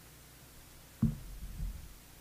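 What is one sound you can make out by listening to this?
A man sits down heavily with a thump.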